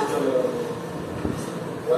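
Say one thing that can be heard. Metal utensils clink and clatter.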